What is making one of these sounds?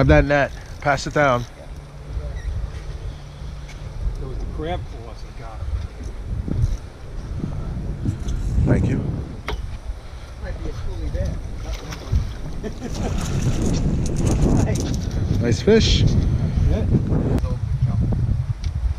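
Wind rumbles across the water outdoors.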